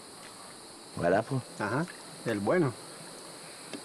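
A man speaks up close in a strained, animated voice.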